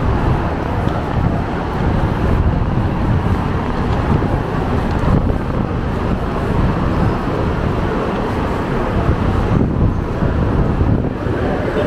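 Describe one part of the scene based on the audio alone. A crowd of men and women chatters nearby in a large, open, covered space.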